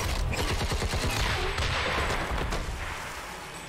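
An energy blast hits with a crackling burst of sparks.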